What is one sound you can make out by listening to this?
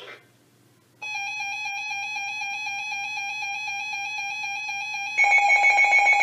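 Weather radios sound a steady, high electronic alert tone.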